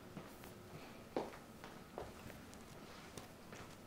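A young woman sits down on a chair with a soft thump.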